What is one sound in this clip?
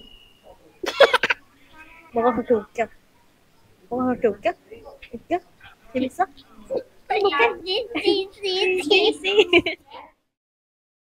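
A small child babbles and laughs up close.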